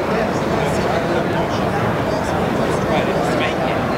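Billiard balls click together on a pool table.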